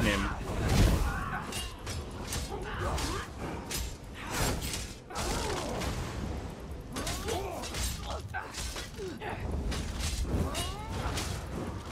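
Magic bursts crackle and explode.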